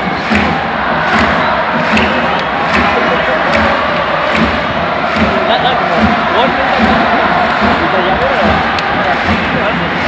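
A large stadium crowd chants loudly in a steady rhythm, echoing in the open air.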